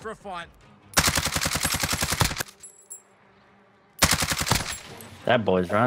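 A rifle fires rapid automatic bursts up close.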